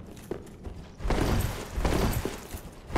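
A heavy body hits the ground and rolls with a loud crash.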